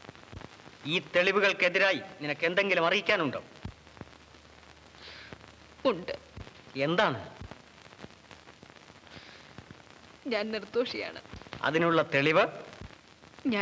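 A man speaks forcefully and theatrically.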